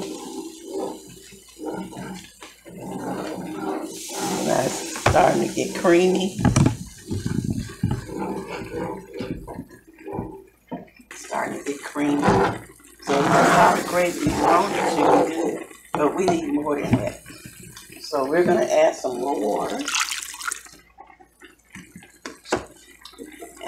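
Food sizzles quietly in a hot pan.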